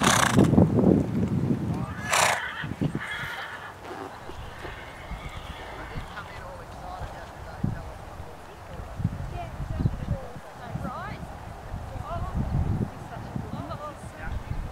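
Hooves thud softly on dirt as a horse trots.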